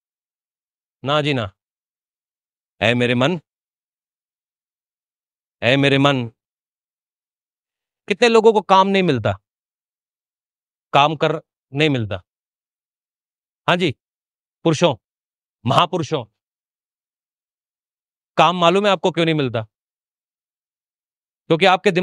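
A man speaks into a microphone in short, measured phrases with pauses between them.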